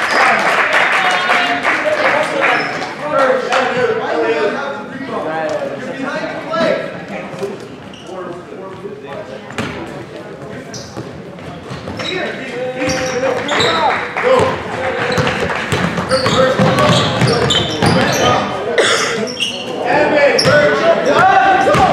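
Spectators shout and cheer in an echoing gym.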